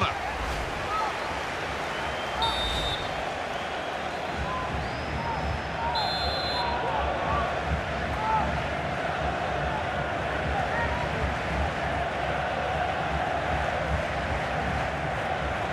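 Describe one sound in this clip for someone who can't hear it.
A stadium crowd roars and murmurs.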